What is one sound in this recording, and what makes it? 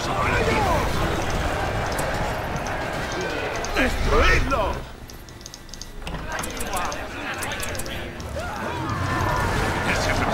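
Weapons clash and clang in a noisy battle.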